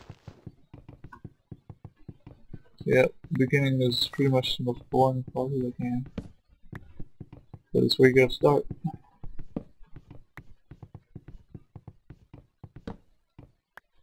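Wooden blocks are struck with rapid, dull knocks.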